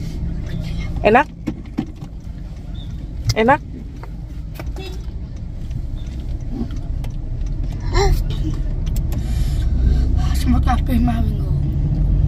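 A toddler squeals and babbles in a high voice.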